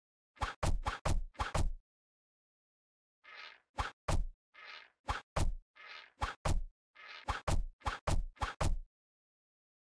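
Sharp, quick thuds of arrows being shot and striking come in rapid bursts.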